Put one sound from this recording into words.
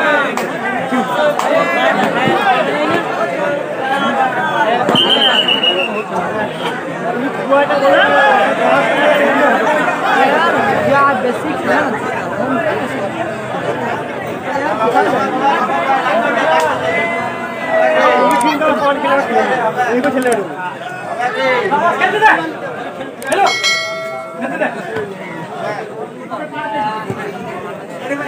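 A man commentates excitedly over a loudspeaker.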